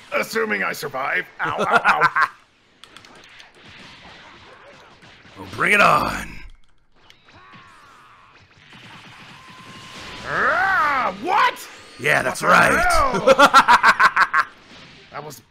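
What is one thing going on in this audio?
Energy blasts whoosh and burst in quick succession.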